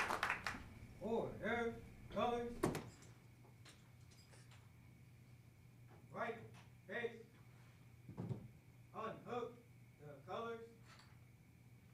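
A man calls out short commands from across the room.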